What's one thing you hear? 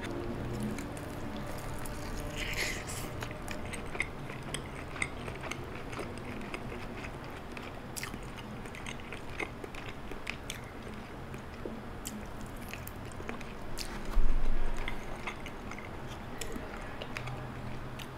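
A young man bites and chews crunchy fried food.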